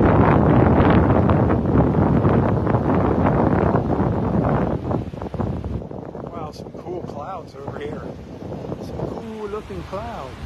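Waves break and wash up onto the shore, loud at first and then softer.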